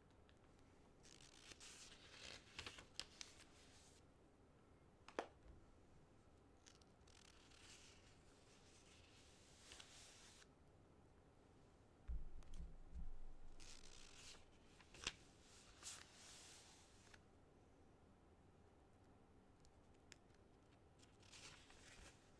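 Large wings flap in bursts of soft whooshing.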